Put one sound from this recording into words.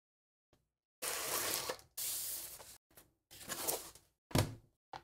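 Plastic sheeting crinkles and rustles as it is handled.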